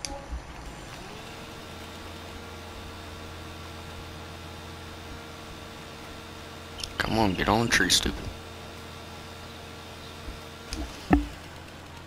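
A chainsaw engine idles steadily.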